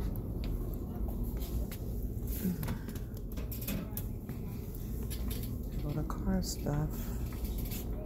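A shopping cart rattles as it rolls over a hard floor.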